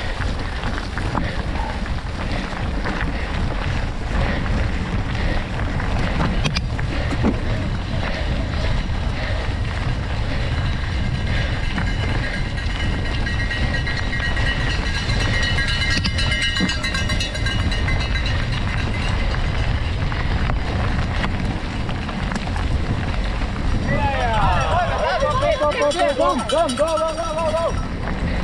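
Bicycle tyres crunch over a gravel path.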